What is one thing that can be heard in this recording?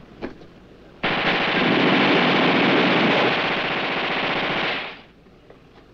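A machine gun fires in a long, rattling burst.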